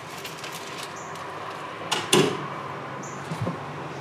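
A caulking gun clatters as it is set down on a metal floor.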